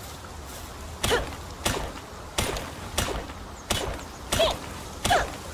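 A pickaxe strikes rock in quick repeated blows.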